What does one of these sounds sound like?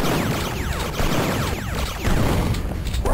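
A shotgun fires loud, booming shots.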